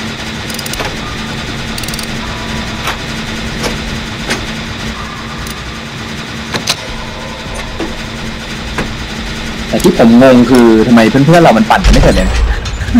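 A machine engine hums steadily while metal parts rattle and click.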